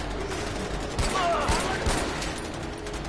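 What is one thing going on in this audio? A pistol fires several loud shots in quick succession.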